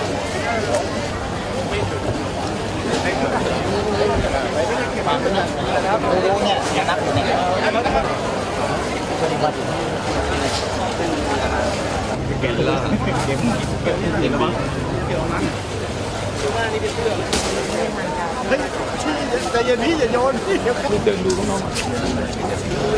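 A crowd chatters loudly all around.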